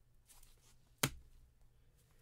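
A plastic card case taps down onto a hard surface.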